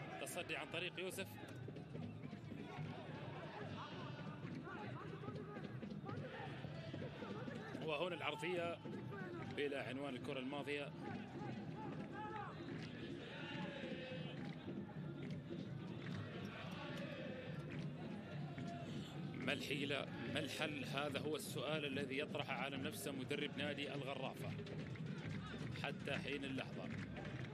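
A small crowd murmurs and calls out in an open stadium.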